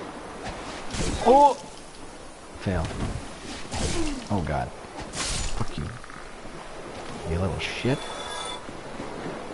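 A sword swings and strikes with sharp metallic hits.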